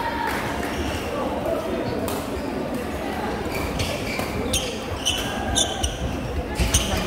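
A crowd chatters throughout a large echoing hall.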